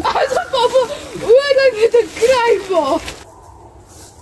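A paper sack rustles and crinkles as it is lifted.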